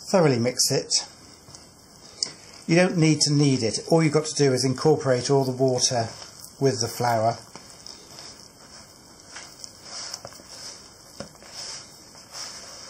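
Hands squish and knead sticky dough in a plastic bowl.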